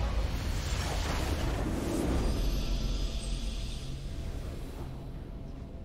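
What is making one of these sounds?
A bright magical whoosh swells and fades away.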